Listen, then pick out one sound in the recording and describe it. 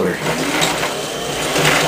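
A pedal-driven wheel whirs as it spins.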